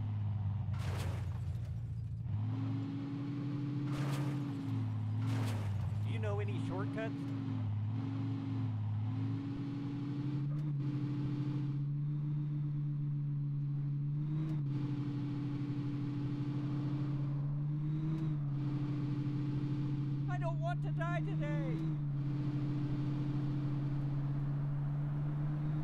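A car engine hums steadily, its pitch shifting as it speeds up and slows down.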